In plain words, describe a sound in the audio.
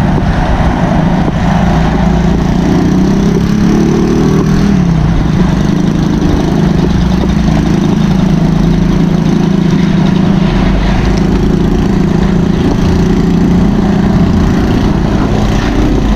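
A motor tricycle's engine drones nearby on the road.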